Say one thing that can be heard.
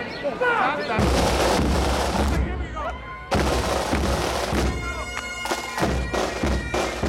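Snare drums roll and beat loudly.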